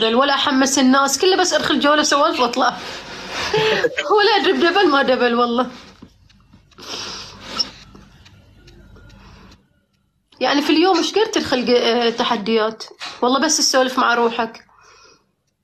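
A young woman talks with animation, heard close through a phone microphone.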